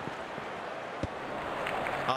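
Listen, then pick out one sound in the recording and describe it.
A cricket bat knocks a ball with a sharp crack.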